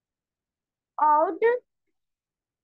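A young boy speaks briefly through an online call.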